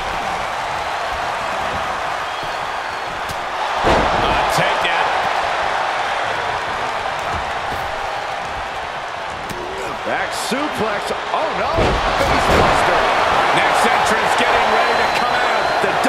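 A large crowd cheers and roars steadily in a big echoing arena.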